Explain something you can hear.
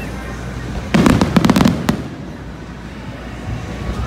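Fireworks crackle and fizzle after bursting.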